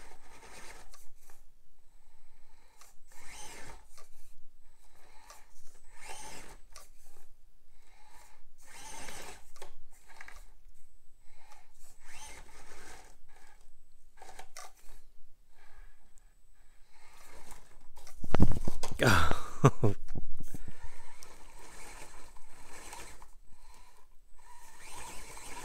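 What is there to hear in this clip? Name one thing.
A small toy truck's electric motor whirs in short bursts.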